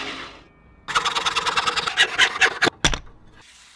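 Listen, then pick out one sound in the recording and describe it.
A hand saw rasps back and forth through wood.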